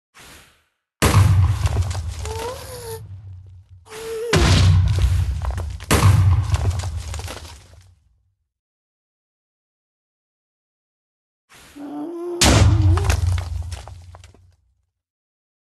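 Loud explosions boom and rumble in bursts.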